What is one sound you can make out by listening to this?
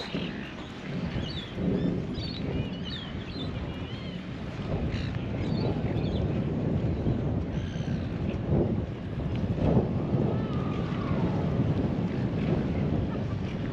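Wind blows and buffets across open water outdoors.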